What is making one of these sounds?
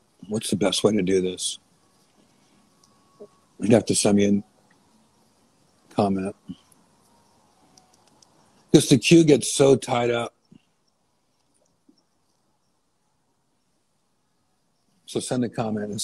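A man speaks close to the microphone in short, animated bursts with pauses between them.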